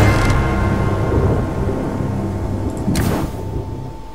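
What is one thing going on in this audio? A brass fanfare plays and fades away.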